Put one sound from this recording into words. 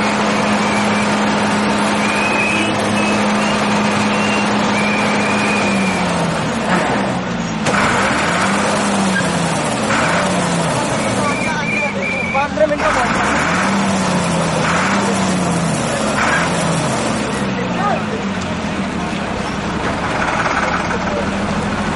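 A large crowd of men talks and calls out outdoors.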